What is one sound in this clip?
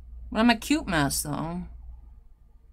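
A young woman speaks briefly and with animation close to a microphone.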